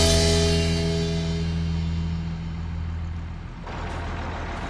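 A tractor engine hums steadily and deeply, heard from inside the cab.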